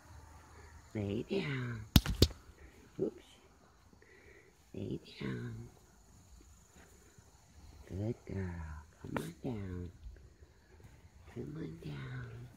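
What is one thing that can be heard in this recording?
A horse's hooves step softly on grass.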